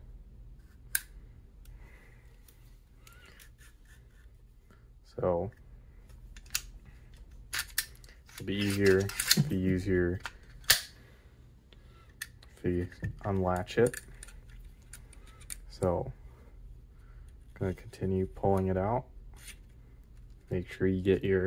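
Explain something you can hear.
Plastic parts click and snap under handling fingers.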